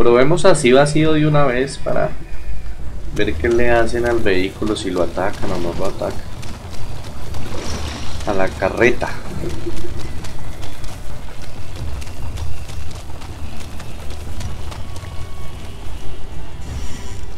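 A wooden cart rumbles and creaks as it is pulled over rough ground.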